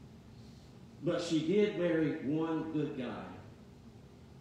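A man speaks calmly into a microphone in a reverberant hall.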